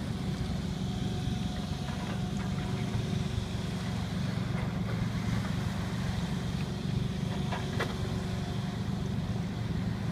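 An excavator bucket splashes as it paddles through the water.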